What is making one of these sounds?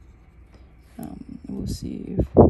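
A pen is picked up and handled with soft rustling and knocks.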